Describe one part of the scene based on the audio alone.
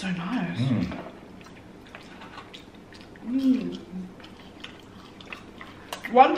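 People chew and crunch food with small wet clicks.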